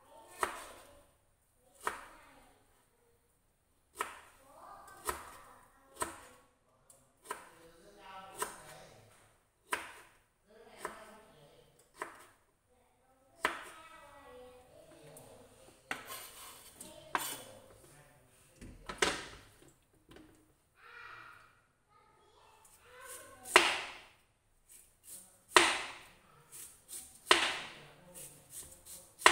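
A knife taps sharply on a cutting board.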